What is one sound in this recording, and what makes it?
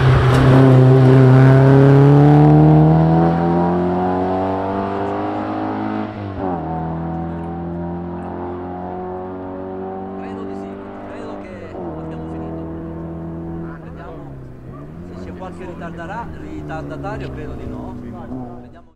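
A car engine revs hard and shifts up through the gears.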